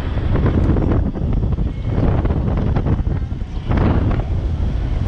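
Wind buffets loudly past an open window.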